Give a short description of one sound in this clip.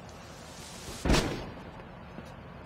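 A wooden crate drops and lands with a heavy thud.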